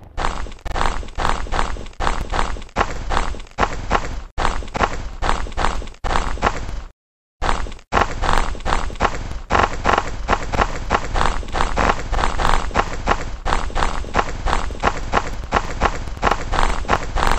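Quick footsteps run on hard pavement.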